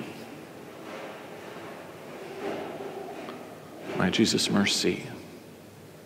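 A man chants a prayer aloud in a reverberant room.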